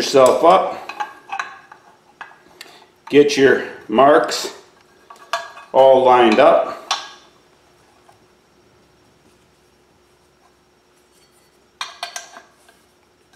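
Metal parts click and clank as a hand pump is worked.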